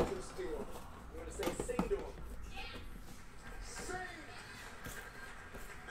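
A box lid taps and scrapes as it is lifted off.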